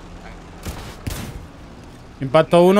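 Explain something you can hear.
A rifle fires.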